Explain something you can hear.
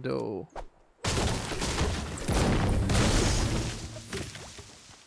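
A pickaxe thunks repeatedly against a tree trunk.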